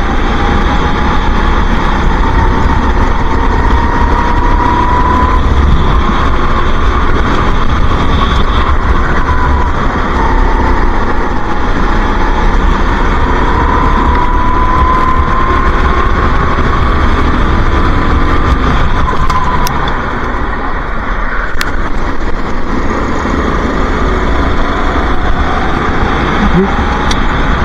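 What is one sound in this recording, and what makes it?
A go-kart engine buzzes loudly close by, its pitch rising and falling with the throttle.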